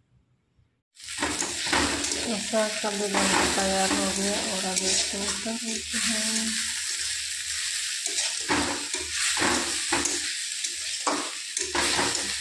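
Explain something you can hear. Greens sizzle loudly in a hot pan.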